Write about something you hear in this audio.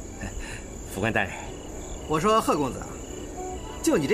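A man speaks with mild exasperation.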